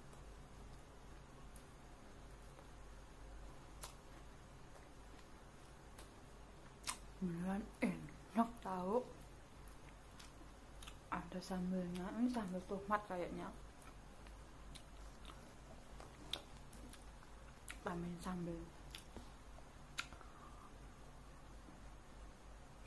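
A young woman chews food with soft smacking sounds.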